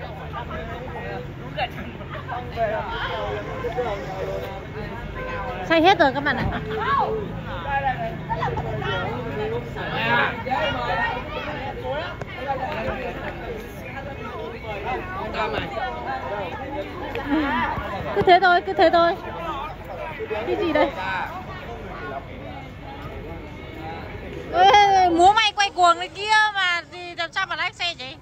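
Several young women talk and chatter close by.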